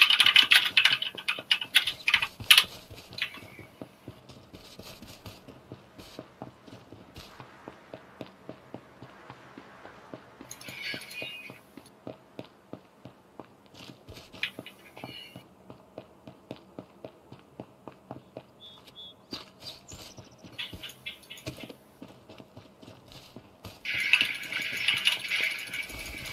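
Footsteps run steadily on pavement and grass.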